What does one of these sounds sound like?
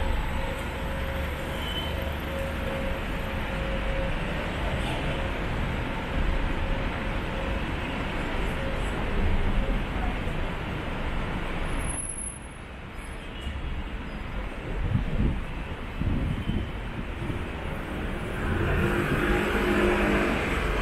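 City traffic rumbles steadily along a street outdoors.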